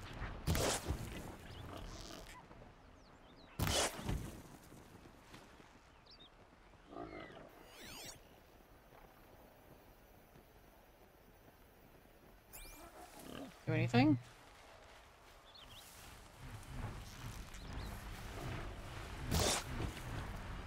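A bowstring twangs sharply as an arrow is loosed.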